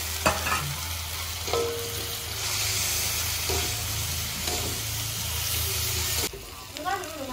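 Food sizzles and crackles in a hot pan.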